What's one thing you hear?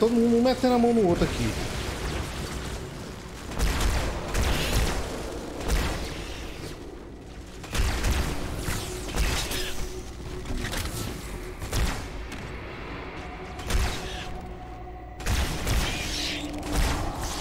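Gunshots and energy blasts fire in bursts.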